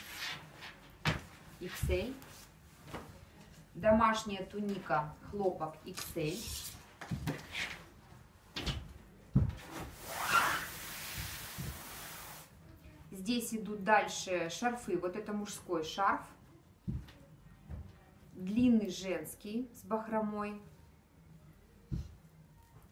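Fabric rustles and swishes as clothes are handled.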